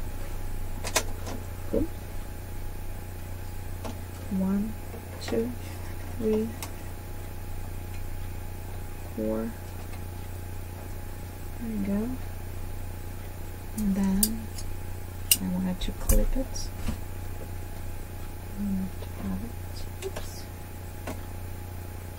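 Small plastic parts of a sewing machine click and tap as it is threaded by hand.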